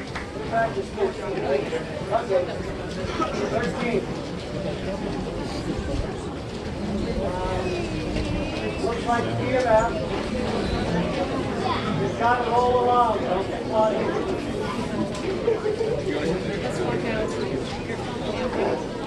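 A brass band plays a lively tune outdoors.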